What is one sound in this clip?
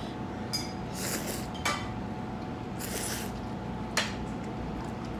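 A middle-aged man slurps noodles loudly, close by.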